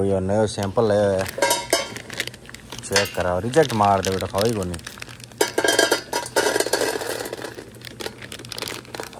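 Dry kibble pours and rattles into a metal bowl.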